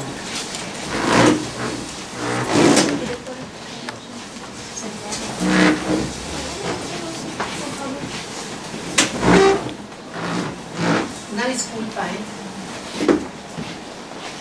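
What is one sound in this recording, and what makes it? Chairs scrape and shuffle as people stand up.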